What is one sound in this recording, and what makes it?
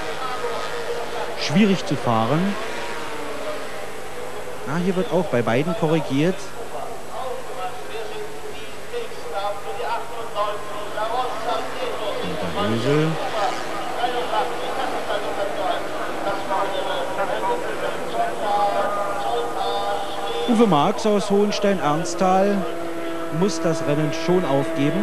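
Racing motorcycle engines roar past, their pitch sweeping up and down as they pass.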